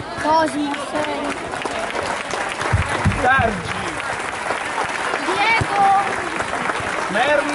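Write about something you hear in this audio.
Young boys chatter and shout excitedly close by, outdoors.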